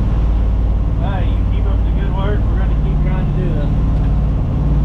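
A man speaks nearby over the engine noise.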